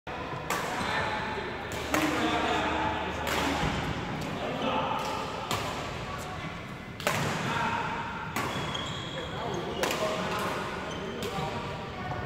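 Shuttlecocks are hit with rackets, with sharp pops echoing through a large hall.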